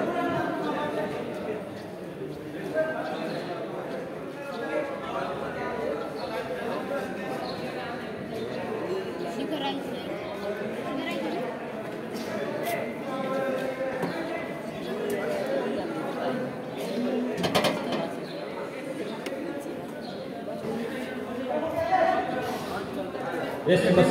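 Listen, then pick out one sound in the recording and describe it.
Many voices chatter and call out across an echoing indoor court.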